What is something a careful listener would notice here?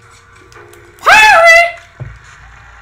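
A boy shouts and cheers loudly.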